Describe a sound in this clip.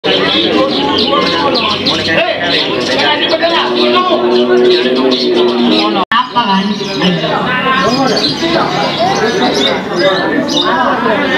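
Many caged songbirds chirp and trill loudly all at once.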